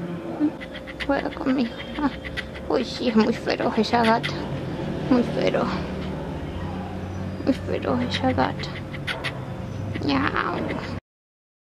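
A kitten mews softly.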